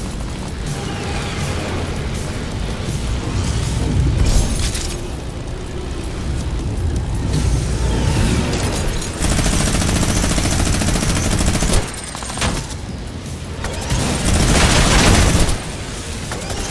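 A plane engine roars steadily.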